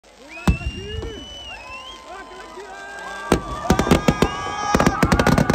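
Fireworks bang and crackle loudly in rapid bursts.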